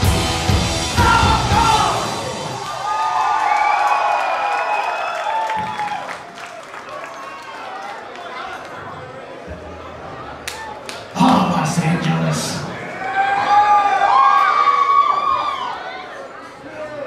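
A crowd whistles shrilly.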